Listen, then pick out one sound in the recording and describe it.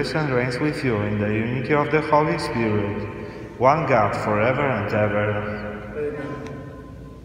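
A man sings a chant through a microphone in a large echoing hall.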